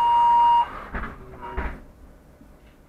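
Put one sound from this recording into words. Bus doors thump shut.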